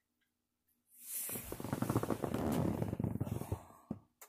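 Clothing rustles loudly against the microphone as a person reaches past.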